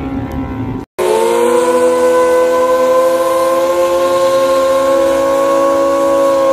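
A motorcycle engine revs loudly and holds a steady high drone.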